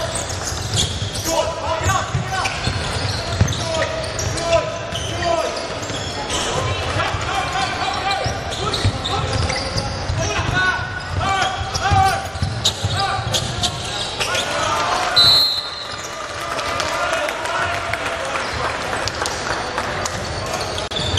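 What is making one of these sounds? A crowd of people chatter loudly in a large echoing hall.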